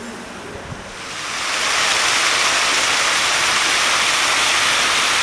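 A fountain's jets splash into a basin.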